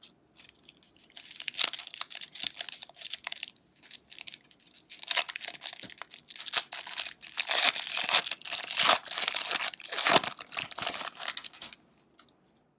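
A foil wrapper crinkles and tears loudly as it is opened.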